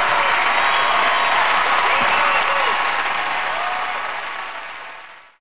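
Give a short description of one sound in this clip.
A large crowd applauds and cheers loudly in a big hall, then fades.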